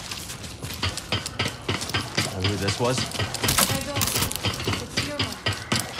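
Footsteps run over a metal walkway.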